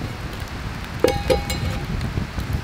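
A metal pan clanks down onto the fire.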